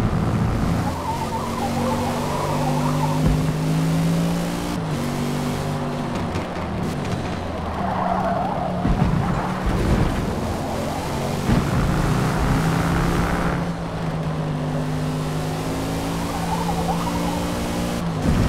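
Tyres squeal through corners.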